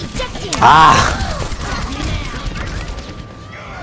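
Gunfire crackles in a video game.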